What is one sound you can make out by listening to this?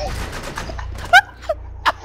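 A gun fires sharp shots close by.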